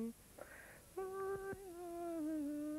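A woman plays a squeezebox with sustained, wavering notes.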